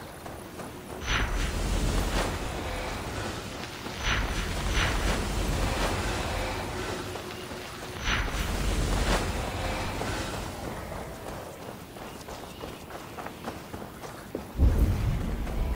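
A magical burst whooshes with a deep rumble, several times.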